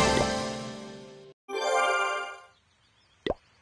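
A bright game jingle plays at the start.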